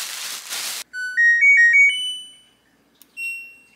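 A washing machine plays a rising series of electronic beeps.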